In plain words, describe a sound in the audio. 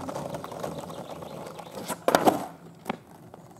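Skateboard wheels roll and rumble on rough asphalt.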